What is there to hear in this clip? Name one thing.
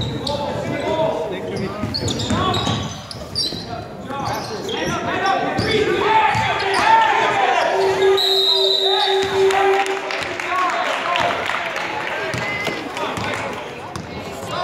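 Spectators and players shout and call out across the gym.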